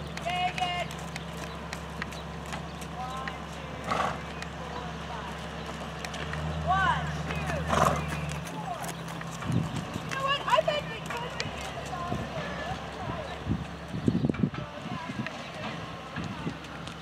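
Horse hooves thud on soft dirt at a trot.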